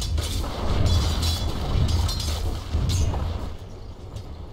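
Fighting rumbles and crackles as spells and blows clash.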